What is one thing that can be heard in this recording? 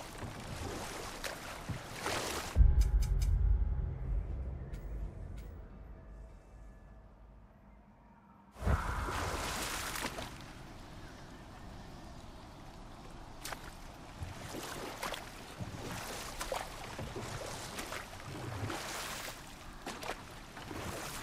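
Oars splash and water laps against a rowed boat.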